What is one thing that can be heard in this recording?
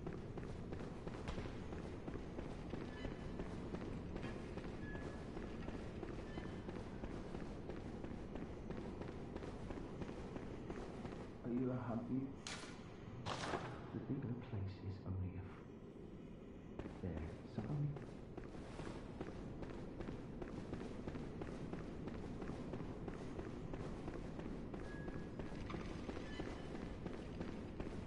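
Footsteps run across a stone floor.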